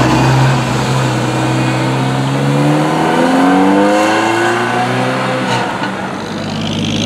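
A sports car engine roars loudly, rising in pitch as the car accelerates away.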